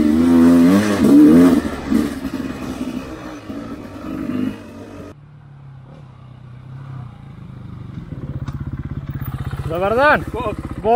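A dirt bike engine revs hard and then idles with a low putter.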